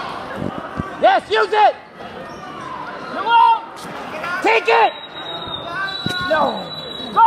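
Spectators shout and cheer loudly in an echoing gym.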